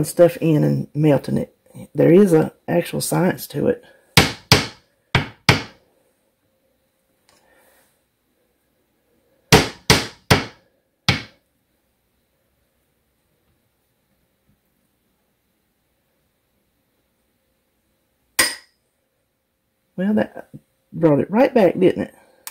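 A spoon scrapes and taps against a ceramic cup.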